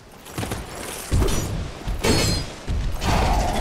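A fiery blast bursts with a loud whoosh.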